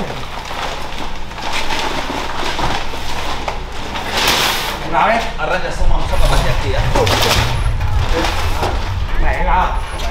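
Heavy sacks thump down onto a metal truck bed.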